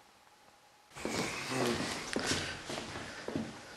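A man speaks in a hushed, tense voice close by.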